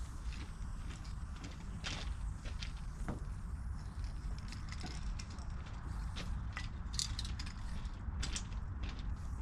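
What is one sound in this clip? A spray can hisses in short bursts close by.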